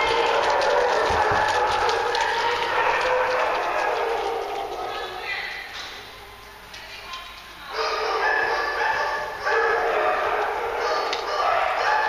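Dogs bark and yelp outdoors.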